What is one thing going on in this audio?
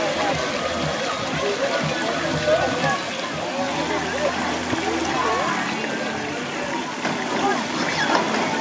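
Many children chatter and shout around an outdoor pool.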